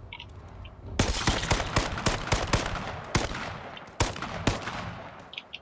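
Rifle shots fire in rapid bursts, ringing in a small room.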